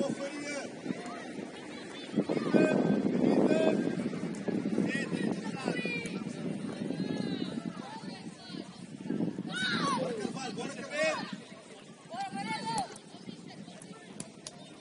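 Young players shout and call to each other outdoors.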